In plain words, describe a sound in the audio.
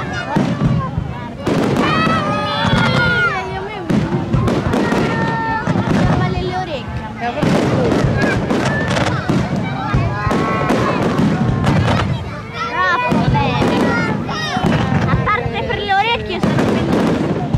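A crowd of adults and children talk and exclaim nearby outdoors.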